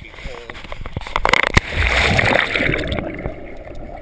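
Water splashes loudly.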